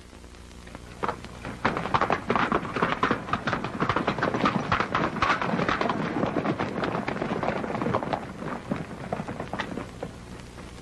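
Many horses' hooves thunder across dusty ground and fade away.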